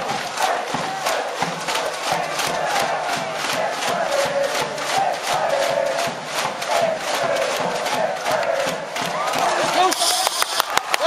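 A crowd of spectators chants and cheers in a large open stadium.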